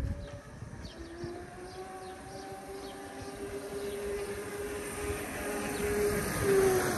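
A small electric motorbike whines as it rides closer, growing louder.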